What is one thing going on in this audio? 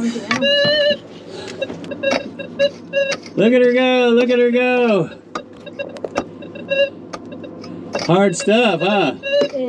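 A metal detector beeps in short, quick bursts.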